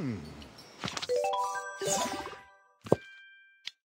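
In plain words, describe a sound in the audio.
A bright chime sounds as a menu pops open.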